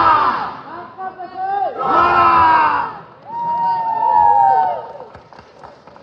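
A young man speaks into a microphone, heard over a loudspeaker.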